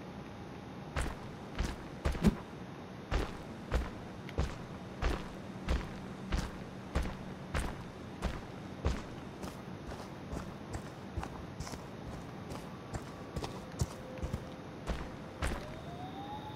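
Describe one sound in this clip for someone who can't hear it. Heavy footsteps thud on leafy ground at a steady pace.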